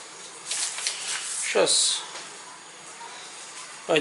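Stiff paper rustles and crinkles under a hand.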